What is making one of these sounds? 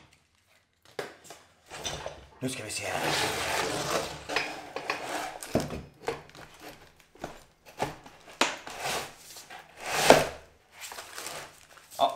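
Metal parts clank on a wooden table.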